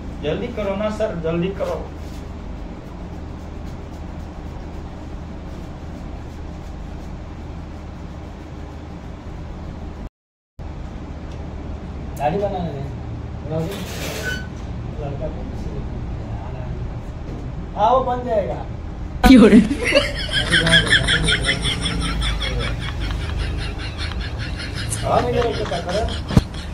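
Hands rub and knead a man's scalp and face.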